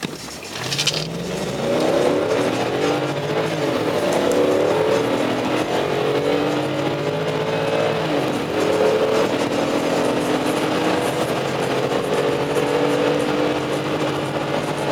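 A car engine revs up and accelerates hard, its pitch climbing and dropping as it shifts gears.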